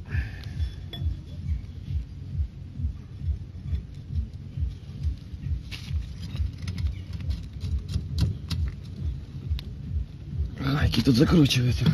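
A metal bar rhythmically knocks and levers against a car's front wheel hub.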